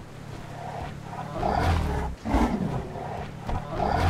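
A large creature growls and roars deeply.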